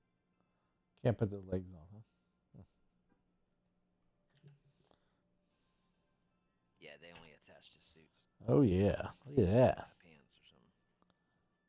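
A middle-aged man talks casually into a close microphone.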